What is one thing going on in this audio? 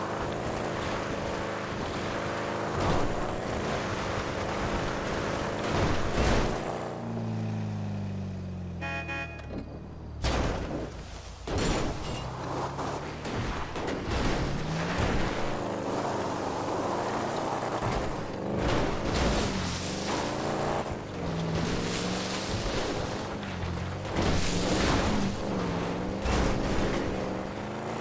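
A car engine revs hard, rising and falling.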